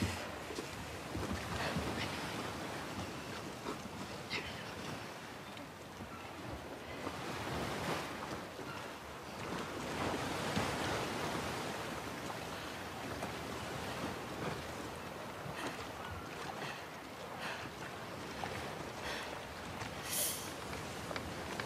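Waves lap steadily all around.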